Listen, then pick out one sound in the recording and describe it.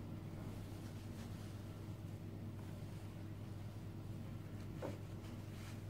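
Fingers rustle softly as they pull a thread tight.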